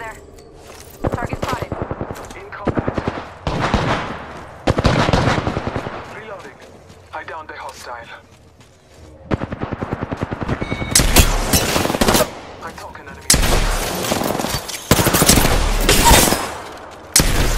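Rapid bursts of automatic gunfire crack close by.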